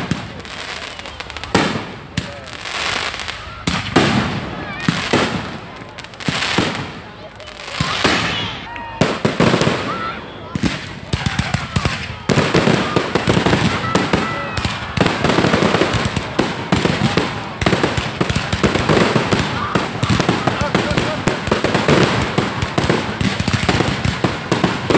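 Fireworks burst with loud bangs and booms.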